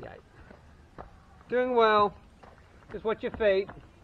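A child's running footsteps crunch on gravel.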